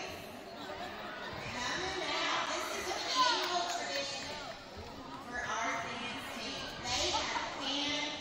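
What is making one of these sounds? A crowd of children and adults chatters and calls out in a large echoing gym.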